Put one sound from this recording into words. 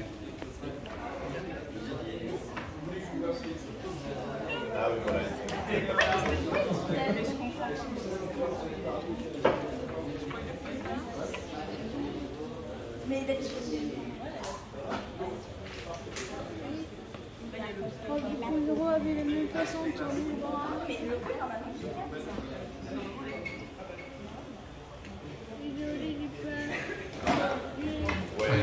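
A crowd of adults and children chatters in a room.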